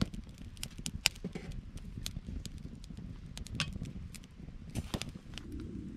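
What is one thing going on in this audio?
A metal pot clanks as it is hung over the fire.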